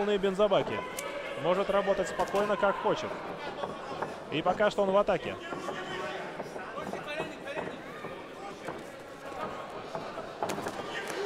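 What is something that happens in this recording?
Punches thud against gloves and bodies.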